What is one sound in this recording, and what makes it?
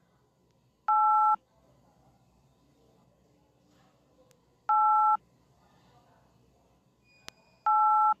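A finger taps on a phone's touchscreen.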